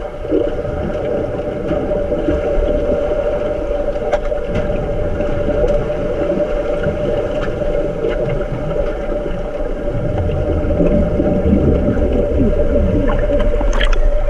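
Muffled splashing and thumping of swimmers churns underwater.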